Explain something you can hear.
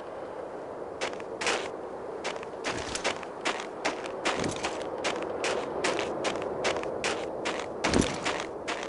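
Boots tread on snow.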